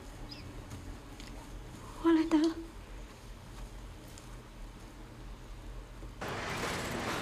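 A young woman sobs and whimpers close by.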